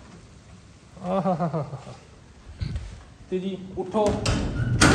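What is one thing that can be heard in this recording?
A man speaks loudly and urgently close by.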